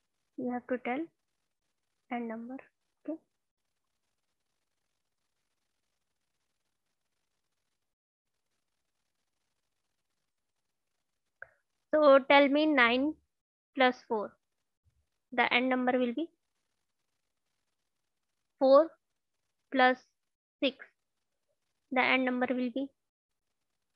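A young woman speaks calmly and clearly through a microphone, pausing between phrases.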